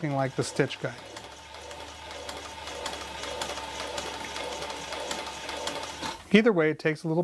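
A sewing machine runs with a rapid, steady ticking as it stitches.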